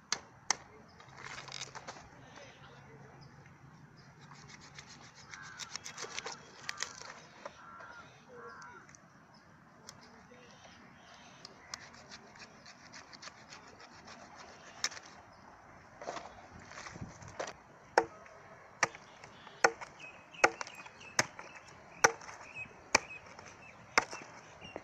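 A sickle chops through roasted chicken and bone on a wooden log.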